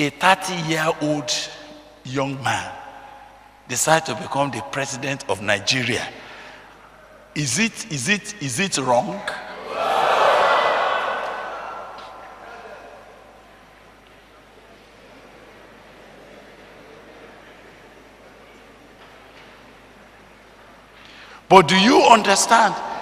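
A man speaks animatedly through a microphone.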